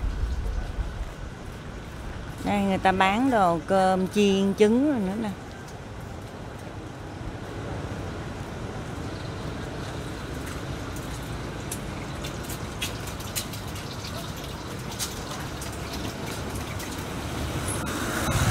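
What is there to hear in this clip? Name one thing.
Distant street traffic rumbles steadily outdoors.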